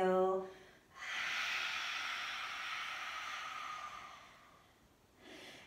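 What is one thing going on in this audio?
A woman breathes out slowly and audibly.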